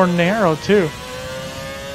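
A racing car engine revs up sharply through quick gear changes.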